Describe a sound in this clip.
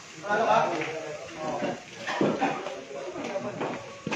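Pool balls clack together on a table.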